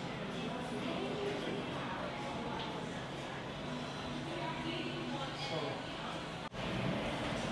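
A murmur of conversation fills a busy room.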